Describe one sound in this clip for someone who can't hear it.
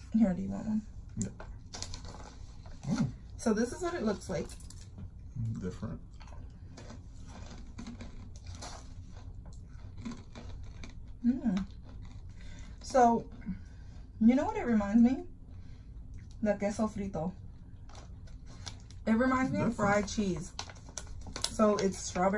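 A paper snack bag crinkles.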